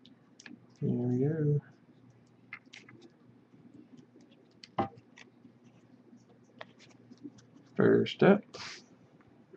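Trading cards click and slide against each other.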